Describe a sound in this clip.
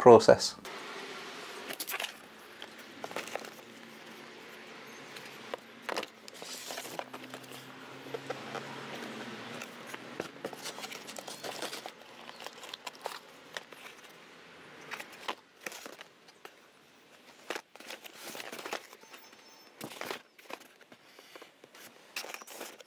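Cardboard boxes rustle and knock as they are handled.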